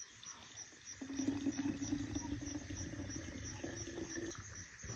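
Water pours from a kettle into a glass bottle.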